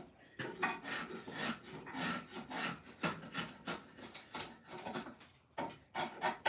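A drawknife shaves wood in repeated rasping strokes.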